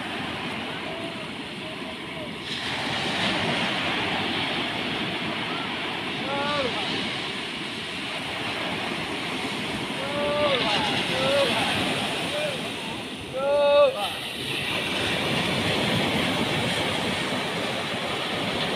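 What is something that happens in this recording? Waves break and wash onto the shore.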